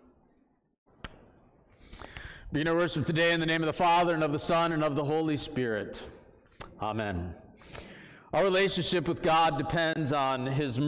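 A man speaks calmly to a gathering in a room with an echo.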